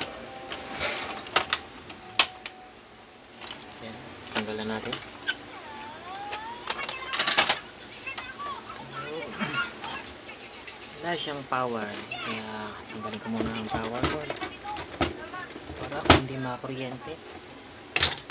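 Hands knock and click against the plastic casing of an inkjet printer.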